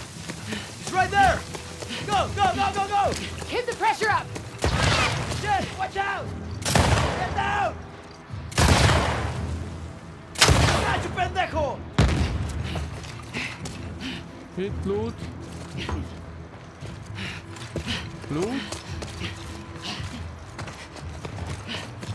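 A young man talks through a microphone.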